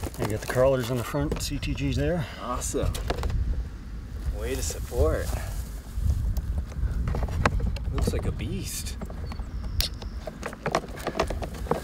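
Small plastic parts click and rattle as hands handle a model boat.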